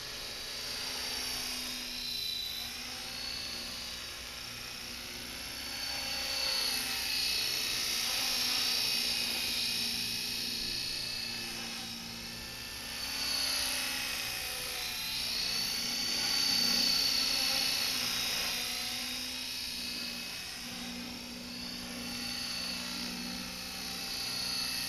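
A model helicopter's engine whines steadily outdoors, its pitch rising and falling as it flies about.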